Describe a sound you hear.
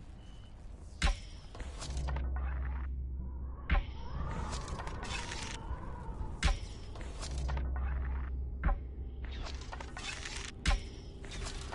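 A bowstring snaps sharply as arrows are loosed, several times.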